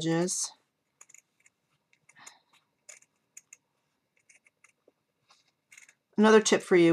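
Scissors snip through paper in small, quiet cuts.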